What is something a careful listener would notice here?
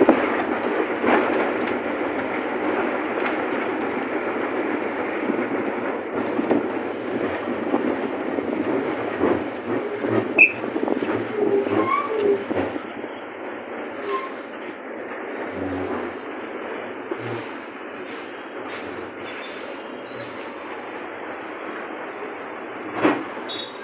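The body of a bus rattles and knocks on the road.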